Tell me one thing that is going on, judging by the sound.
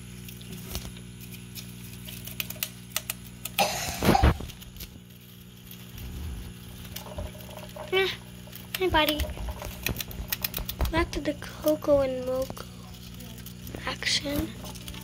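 Small rodents scurry and rustle through dry shredded paper.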